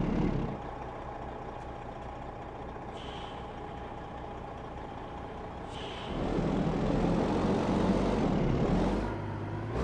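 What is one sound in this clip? A heavy truck engine rumbles steadily, growing louder partway through.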